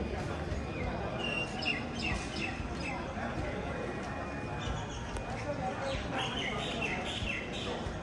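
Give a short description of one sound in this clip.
A crowd of people chatter in a busy outdoor space.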